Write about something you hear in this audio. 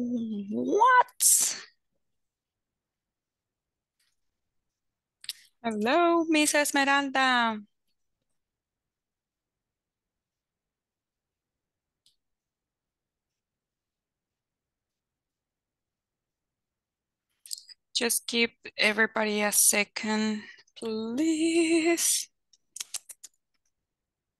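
A woman speaks with animation over an online call, in short bursts with long pauses.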